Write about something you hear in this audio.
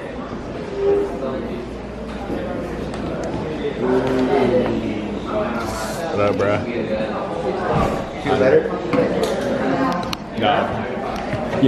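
Young people talk and chatter nearby in a room.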